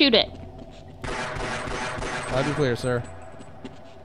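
A pistol fires several shots in quick succession.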